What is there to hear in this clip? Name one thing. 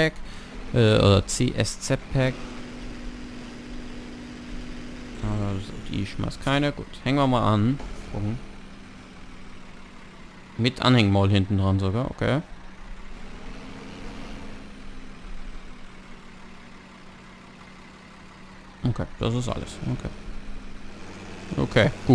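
A tractor engine idles with a steady low rumble.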